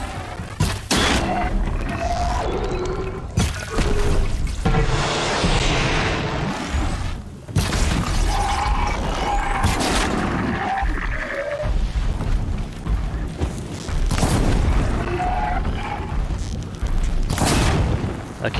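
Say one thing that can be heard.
An arrow whooshes as it is shot from a bow.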